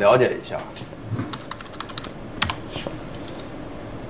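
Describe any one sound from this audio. Fingers tap quickly on a keyboard.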